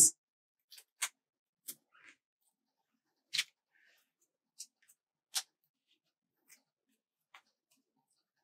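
Hands handle a sheet of stickers with soft paper crinkles and taps.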